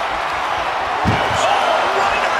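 A heavy body slams onto the floor with a thud.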